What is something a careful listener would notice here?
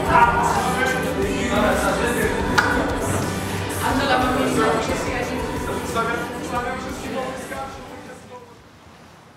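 A live band plays music loudly in a room.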